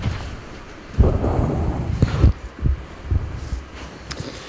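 A man brushes past a microphone, making a thump and rustle.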